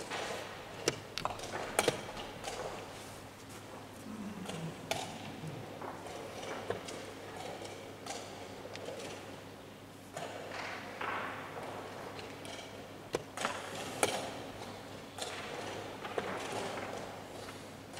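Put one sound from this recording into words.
Chess pieces knock lightly on a wooden board.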